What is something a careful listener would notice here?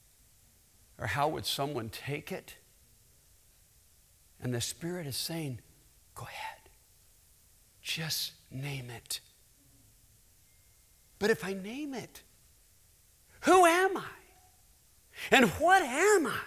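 A middle-aged man speaks with animation through a microphone in a large hall, pausing between phrases.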